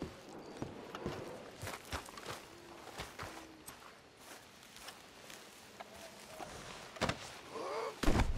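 Footsteps crunch through grass and brush.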